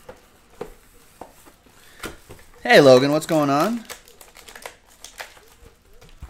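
Cardboard box flaps rustle and tap as hands open them.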